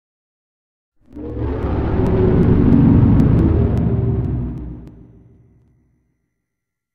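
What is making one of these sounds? A deep, rumbling whoosh swells as something rushes close, then fades away.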